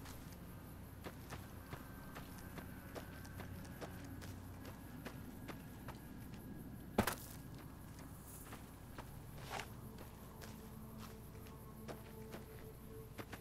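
Footsteps crunch steadily over dry, gravelly ground.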